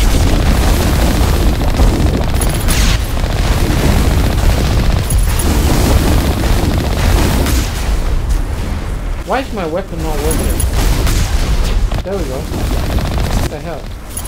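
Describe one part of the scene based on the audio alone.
Gunfire and explosions crack and boom.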